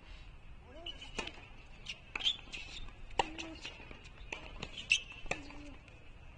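A tennis racket strikes a ball with sharp pops, back and forth outdoors.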